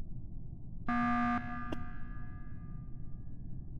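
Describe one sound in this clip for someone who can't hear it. A short electronic alarm blares.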